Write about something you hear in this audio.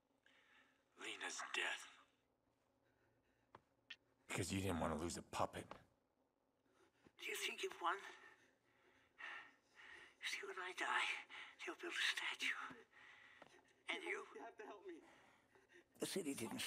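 An elderly man speaks calmly and menacingly.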